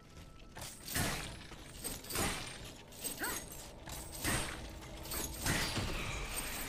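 Metal blades clash and slash in a fight.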